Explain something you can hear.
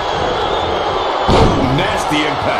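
A body slams hard onto a wrestling mat with a thud.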